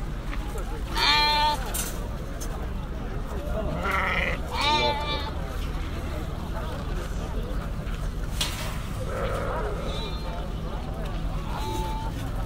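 Sheep bleat loudly close by.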